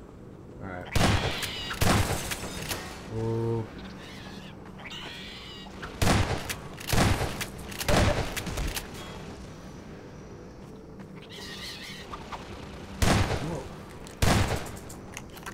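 A shotgun fires loud blasts that echo through a large hall.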